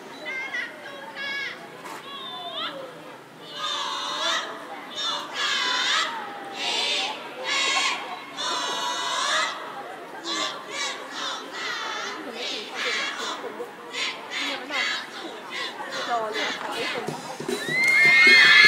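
A large group of children chant together in loud, rhythmic bursts outdoors.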